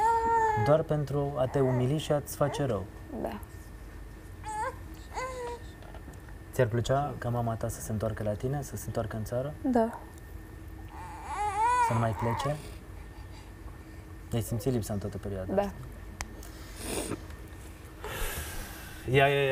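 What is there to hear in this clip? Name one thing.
A young woman speaks emotionally through a microphone, in short bursts.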